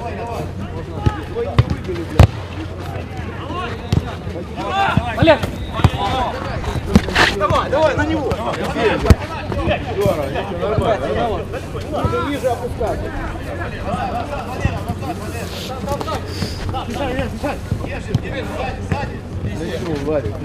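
Men shout and call out to each other across an outdoor pitch.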